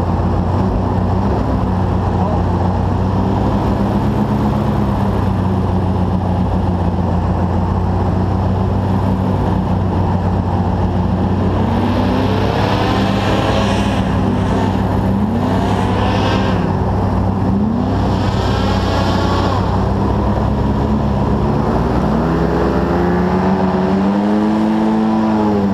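An airboat engine and propeller roar loudly and steadily close by.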